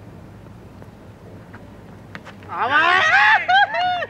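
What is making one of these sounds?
A bat cracks against a cricket ball.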